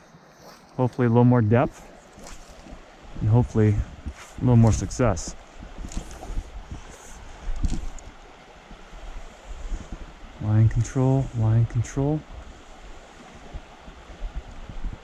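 A shallow stream ripples and gurgles over stones.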